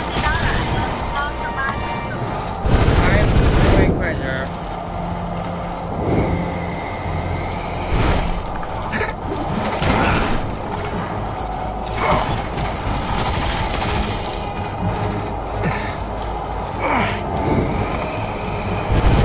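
Lively game music plays throughout.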